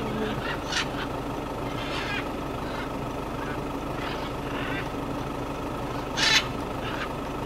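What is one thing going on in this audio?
Large parrots squawk harshly now and then.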